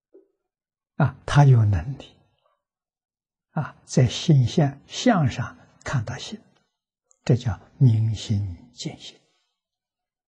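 An elderly man speaks calmly and warmly into a close microphone, with pauses.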